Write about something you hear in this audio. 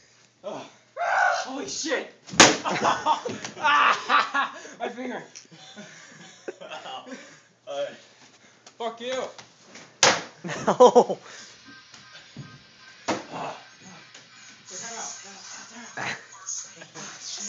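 Young men talk and laugh loudly close by in a room.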